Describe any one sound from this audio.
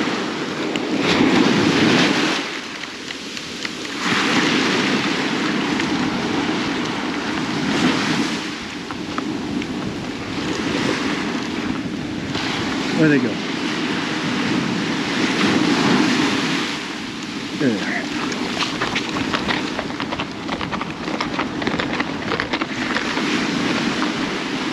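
Waves wash onto the shore in surges.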